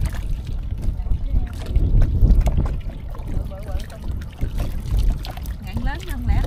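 Water splashes and sloshes as hands scoop in the shallows.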